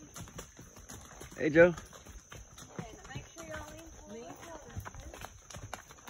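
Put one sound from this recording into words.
A horse trots on a dirt path, its hooves thudding.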